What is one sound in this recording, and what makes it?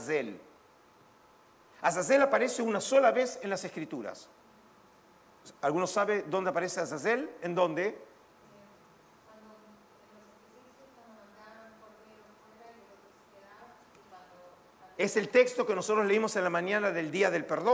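An older man lectures calmly into a microphone in a large echoing hall.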